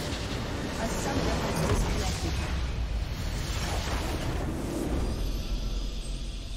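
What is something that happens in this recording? A large crystal structure explodes with a deep rumble.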